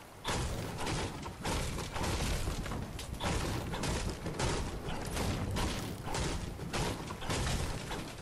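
A video game pickaxe strikes wood again and again.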